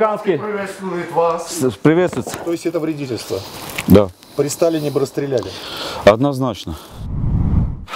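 A middle-aged man talks close by with animation.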